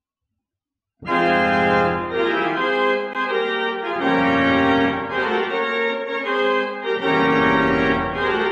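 A pipe organ begins playing loud, full chords that ring out in a large echoing hall.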